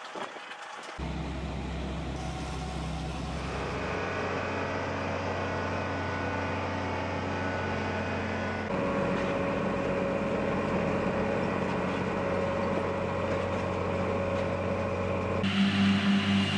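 A harvester engine drones steadily as its rotors churn.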